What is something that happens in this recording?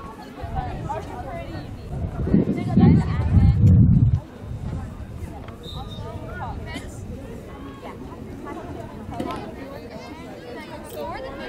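Young women call out to each other outdoors.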